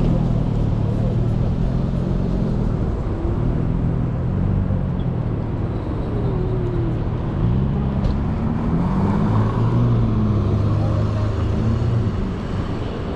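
A car engine idles and revs nearby.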